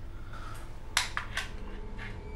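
A pistol knocks against a tile floor.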